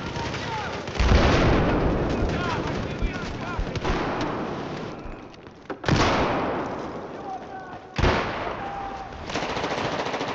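Explosions boom loudly and rumble away.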